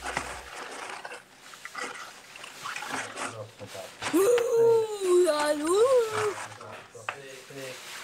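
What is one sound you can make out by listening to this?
A paper bag rustles and crinkles as it is set down.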